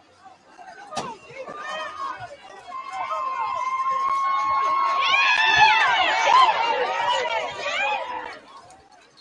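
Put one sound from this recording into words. A crowd cheers loudly outdoors during a football play.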